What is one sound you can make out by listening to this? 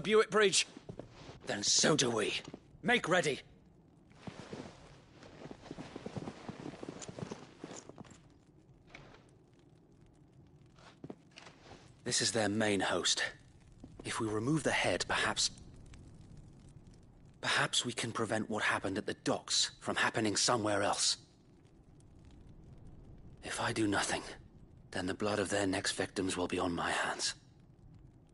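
A young man speaks earnestly and close by.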